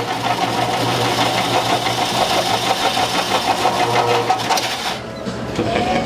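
An ice shaving machine whirs and grinds loudly.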